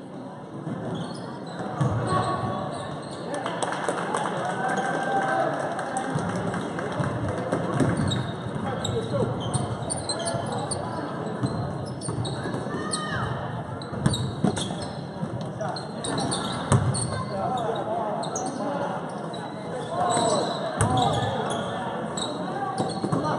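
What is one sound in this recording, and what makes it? A crowd of spectators cheers and calls out, echoing in a large hall.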